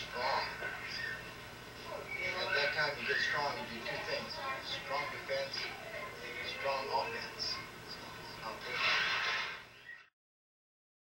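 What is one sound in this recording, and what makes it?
A middle-aged man speaks to the listener with animation, close by.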